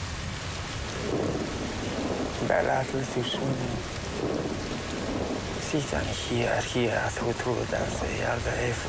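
A man speaks slowly and gravely.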